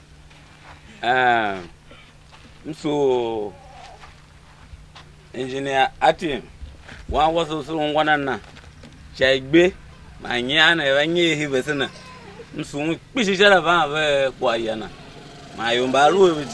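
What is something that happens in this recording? A middle-aged man speaks loudly and with animation outdoors.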